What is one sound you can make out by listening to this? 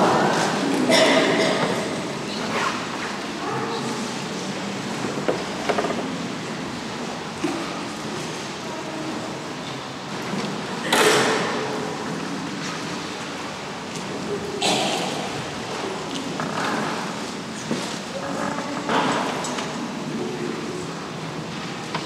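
An elderly man speaks slowly and solemnly through a microphone in a large echoing hall.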